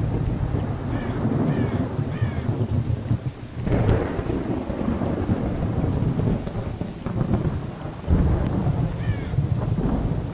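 Birds call briefly overhead.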